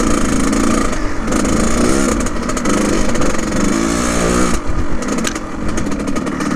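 A dirt bike engine revs loudly up and down, close by.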